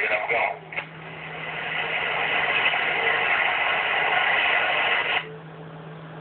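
A radio hisses loudly with static.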